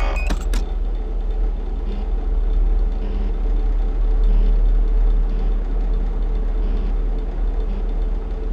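An electric fan hums steadily.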